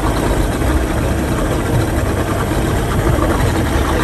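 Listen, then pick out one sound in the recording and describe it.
Speedboat outboard engines roar past close by.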